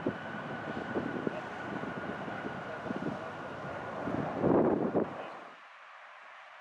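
Jet engines roar loudly with a high whine as an airliner powers up.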